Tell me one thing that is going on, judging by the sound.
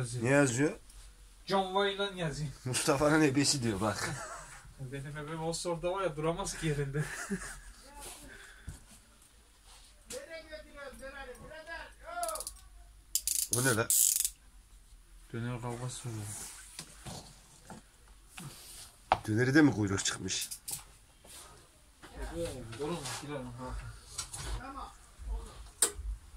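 A leather belt rustles and taps as it is handled.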